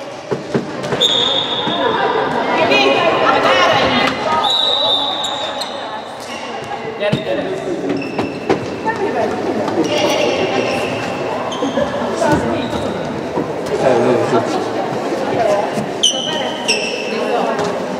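Sneakers squeak sharply on a hall floor.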